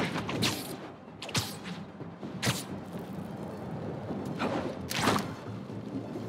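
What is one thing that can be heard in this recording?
Air whooshes past in quick bursts.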